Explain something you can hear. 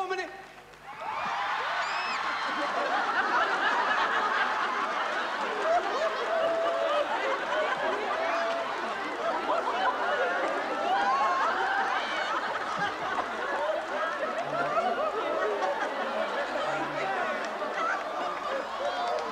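An audience laughs and chatters loudly.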